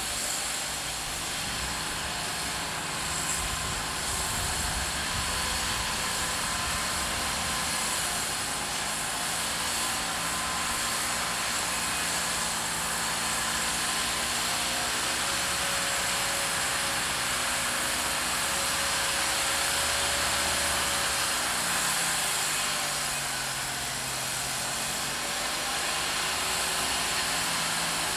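An off-road vehicle's engine revs and labours steadily close by.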